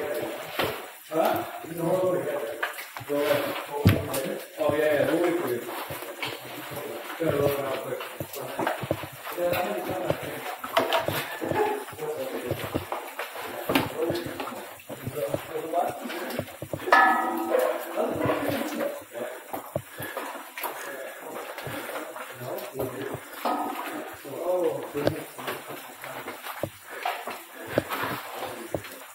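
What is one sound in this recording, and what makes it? Boots and gloved hands clank on metal ladder rungs during a climb.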